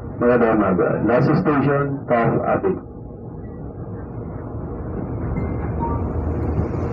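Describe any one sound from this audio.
A crowded train rumbles steadily along the tracks.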